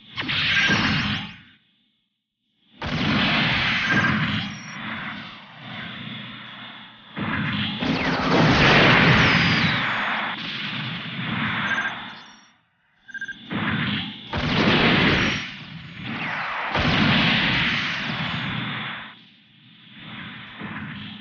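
Rocket thrusters roar in bursts.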